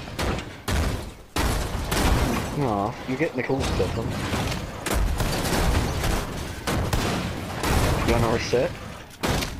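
A vehicle crashes and tumbles with loud metal bangs.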